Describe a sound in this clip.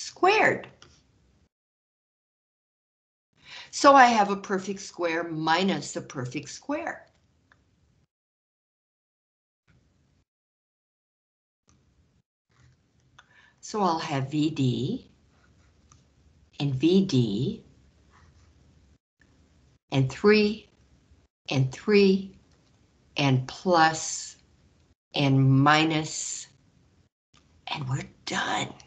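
A woman explains calmly, heard through an online call.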